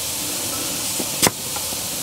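Air hisses steadily out of a tyre valve.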